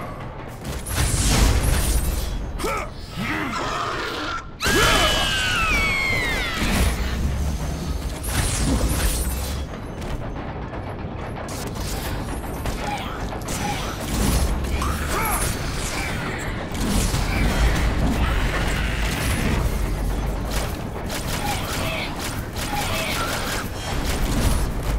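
Heavy booming hits thud and rumble.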